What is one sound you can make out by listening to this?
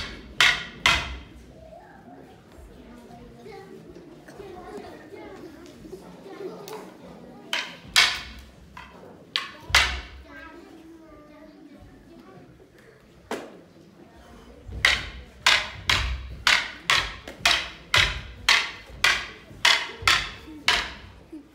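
Wooden practice swords clack together sharply in quick strikes, in an echoing hall.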